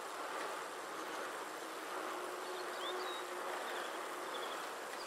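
A bicycle rolls steadily along a paved road.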